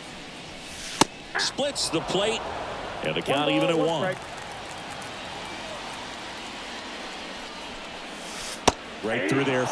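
A pitched baseball pops into a catcher's mitt with a sharp smack.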